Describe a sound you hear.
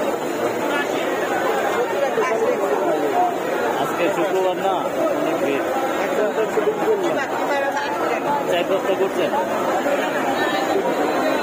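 A crowd of men chatter loudly nearby, outdoors.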